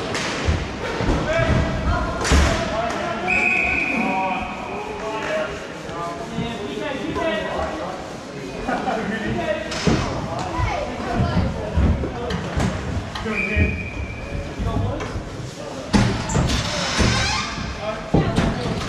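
Sticks clack against a ball and the floor.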